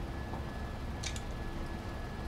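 A gun is cocked with a sharp metallic click.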